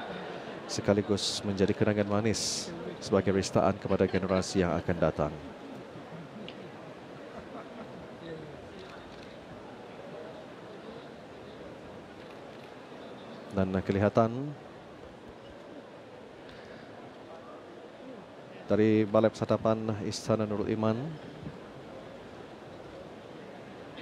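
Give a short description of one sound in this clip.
A crowd murmurs softly in the background.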